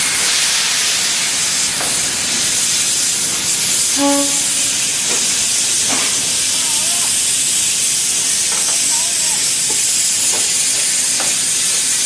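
A steam locomotive hisses loudly and steadily as steam escapes.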